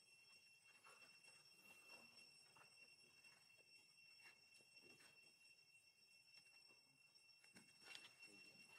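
A baby monkey squeals in short, high cries.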